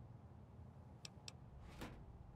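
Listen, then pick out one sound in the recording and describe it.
Two quick, light clicks sound in succession.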